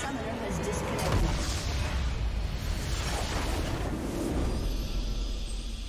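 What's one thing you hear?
A deep explosion booms and rumbles.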